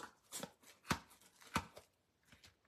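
A spool of ribbon is set down on a tabletop with a soft knock.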